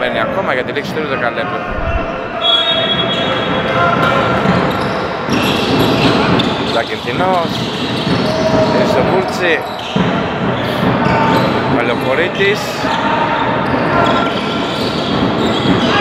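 A crowd of spectators chatters and calls out in the background.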